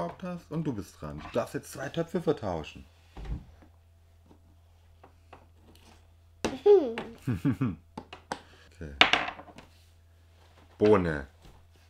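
Small game pieces clatter on a wooden table.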